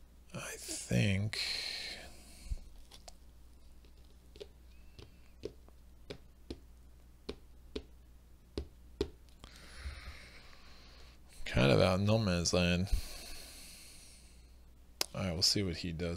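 Small game pieces click and tap on a tabletop.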